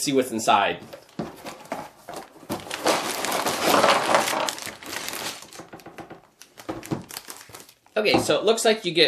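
Cardboard and plastic bags rustle as a box is opened and emptied.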